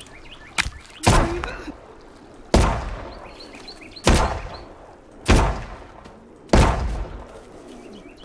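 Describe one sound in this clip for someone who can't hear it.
A pistol fires loud single shots that ring out.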